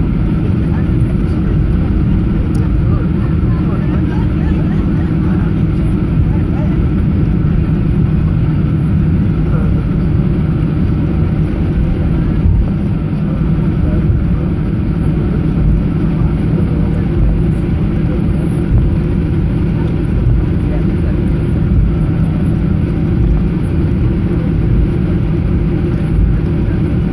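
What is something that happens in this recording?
A jet engine hums steadily and loudly inside an aircraft cabin as the plane taxis.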